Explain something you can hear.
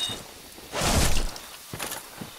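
A sword slashes and clangs in a fight.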